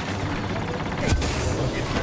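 A jetpack roars briefly.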